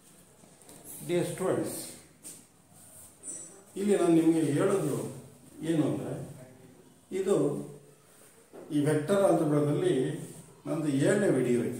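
A middle-aged man speaks clearly and with animation, close by, as if teaching.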